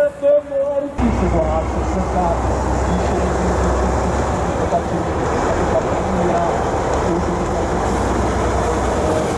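A heavy truck engine rumbles deeply and steadily.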